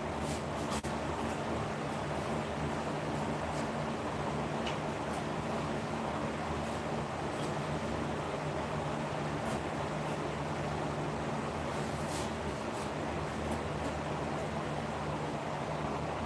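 An electric lamp hums steadily.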